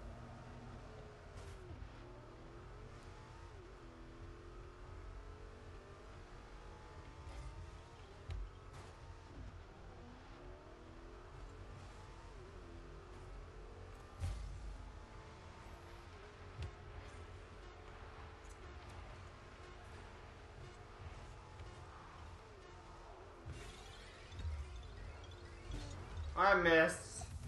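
A car engine hums and revs steadily.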